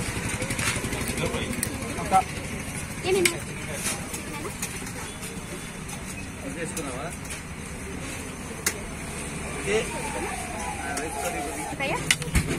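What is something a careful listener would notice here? Men talk in a busy crowd outdoors.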